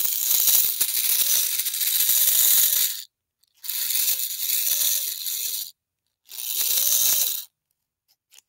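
A small electric motor whirs in short bursts, speeding up and slowing down.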